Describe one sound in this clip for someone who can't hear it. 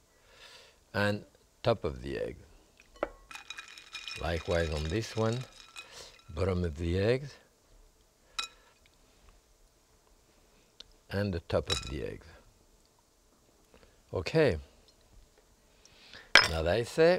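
An elderly man speaks calmly and clearly, close to a microphone.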